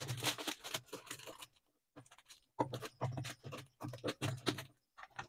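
A plastic mailer crinkles and rustles as it is torn open.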